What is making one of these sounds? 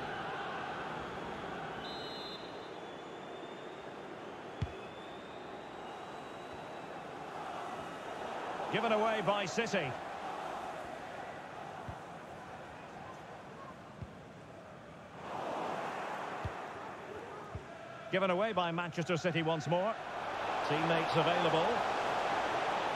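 A large crowd murmurs and cheers steadily in an open stadium.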